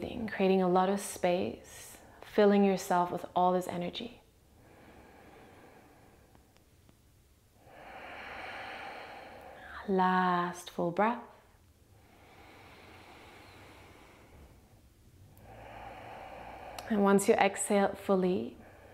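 A young woman speaks slowly and calmly, close to a microphone.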